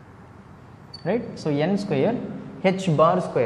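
A young man speaks clearly and with animation, close by.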